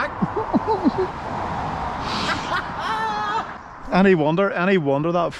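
Traffic hisses steadily along a nearby road.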